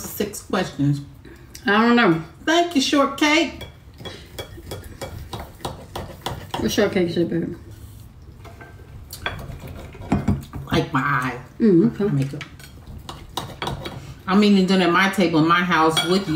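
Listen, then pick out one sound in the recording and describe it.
A fork and knife click and scrape against a plate.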